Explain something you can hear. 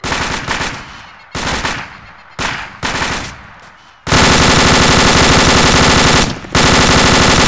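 A rifle fires short bursts of shots, then a long rapid stream of automatic fire.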